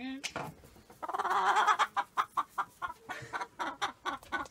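A rooster clucks and squawks in quick, repeated bursts.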